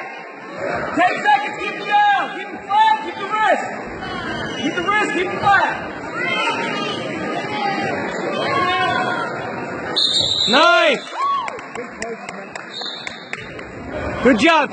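A woman nearby shouts loudly with encouragement.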